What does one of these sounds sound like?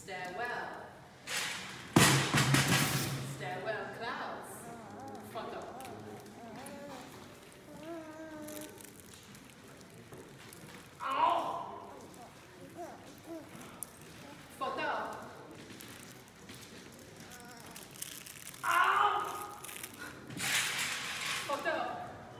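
A woman vocalizes and calls out loudly in an echoing room.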